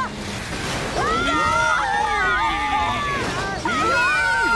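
A young woman screams in panic.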